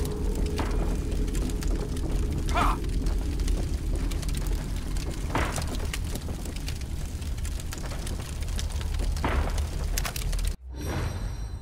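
Footsteps crunch over rubble and creaking boards.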